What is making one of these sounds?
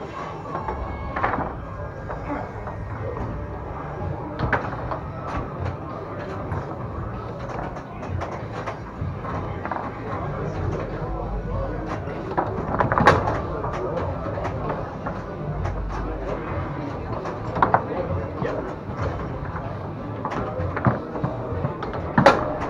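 A ball clacks and bangs against foosball figures and walls.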